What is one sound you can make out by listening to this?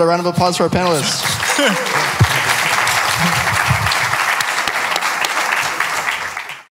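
Several men laugh together.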